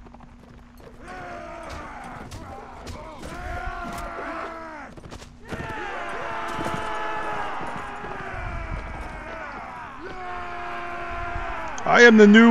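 Elephants trumpet loudly, over and over.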